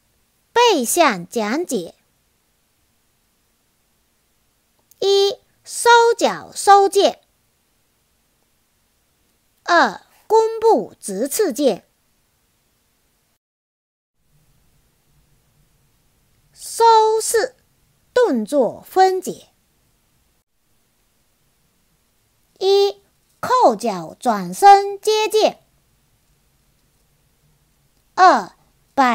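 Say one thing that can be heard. A young woman speaks calmly and clearly, close to a microphone, in short phrases with pauses.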